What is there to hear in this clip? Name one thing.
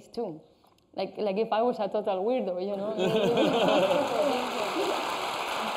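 A young woman speaks cheerfully close to a microphone.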